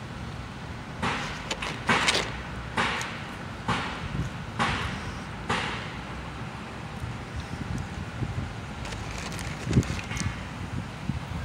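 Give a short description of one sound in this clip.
Crunchy food crackles as a woman bites into it.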